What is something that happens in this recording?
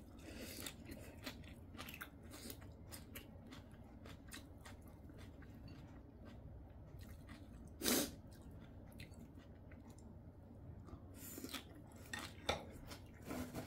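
A young woman slurps and chews food close by.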